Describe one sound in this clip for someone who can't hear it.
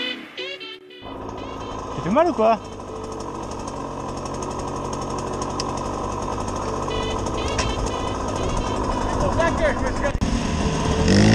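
A dirt bike engine idles with a steady rumble nearby.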